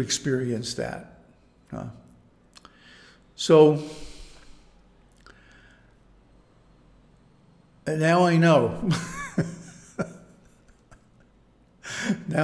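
An elderly man speaks calmly and slowly, close to a microphone, with pauses.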